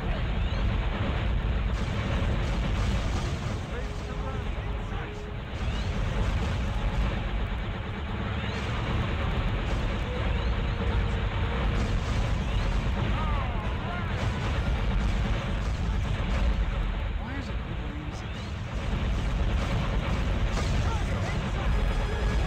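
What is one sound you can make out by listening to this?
Laser blasts fire in rapid bursts.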